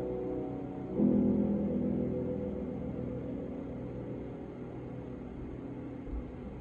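A piano plays a slow, gentle melody with ringing chords.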